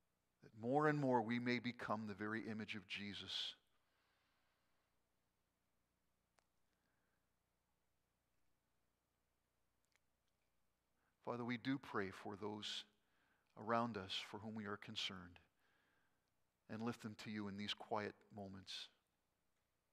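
An elderly man speaks slowly and solemnly through a microphone, with pauses between phrases.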